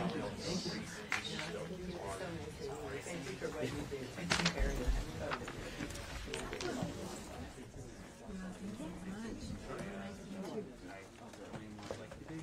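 Several men and women chat quietly nearby in a low murmur.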